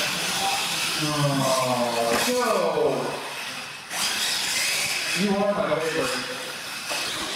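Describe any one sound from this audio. A toy truck's electric motor whines and revs up and down.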